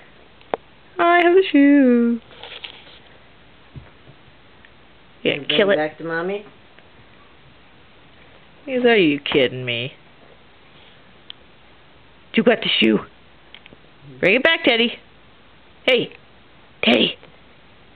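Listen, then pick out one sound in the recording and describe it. A small dog yips and whines in short bursts.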